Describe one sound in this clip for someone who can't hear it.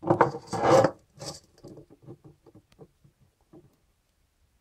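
A stone pestle grinds and taps in a stone mortar.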